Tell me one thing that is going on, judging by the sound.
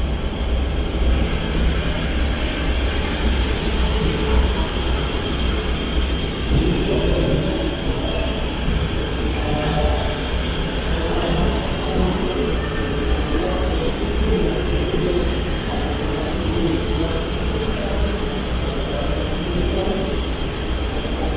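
A train's engine hums steadily.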